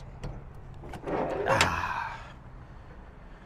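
A car door creaks open.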